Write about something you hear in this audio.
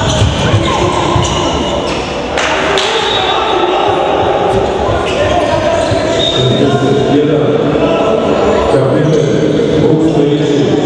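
A crowd of spectators chatters and calls out in the distance.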